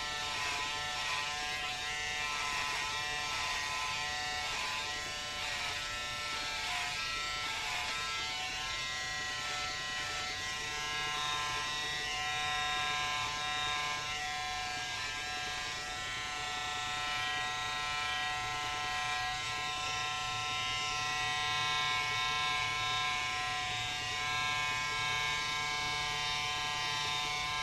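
Electric hair clippers buzz through short hair.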